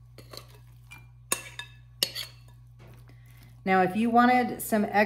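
Shredded salad rustles softly as it is stirred.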